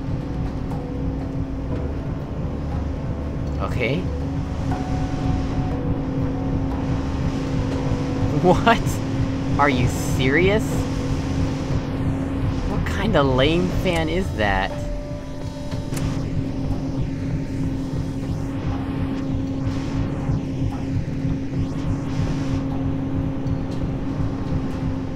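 A large fan hums and whirs steadily.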